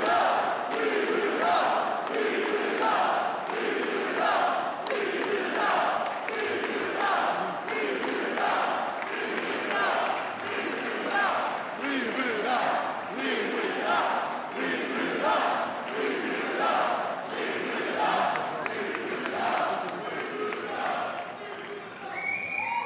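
A large crowd chants loudly in rhythm and cheers.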